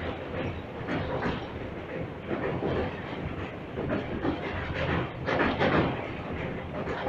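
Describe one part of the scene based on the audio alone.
A train rumbles and clatters steadily over a bridge.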